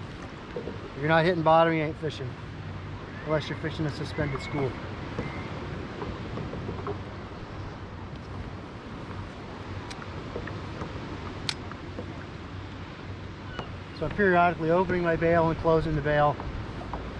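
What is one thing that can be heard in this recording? A middle-aged man talks calmly close to a microphone.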